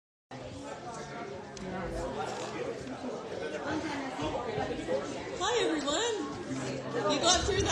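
A woman speaks into a microphone, heard through loudspeakers in an echoing hall.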